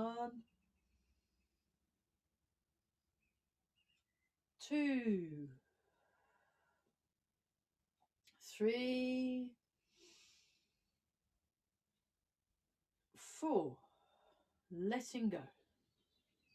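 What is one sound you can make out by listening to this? A woman speaks calmly and close by, in short, spaced-out phrases.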